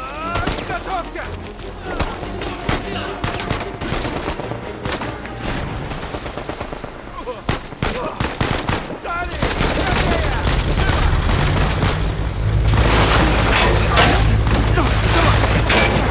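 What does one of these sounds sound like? A man shouts urgently over the noise.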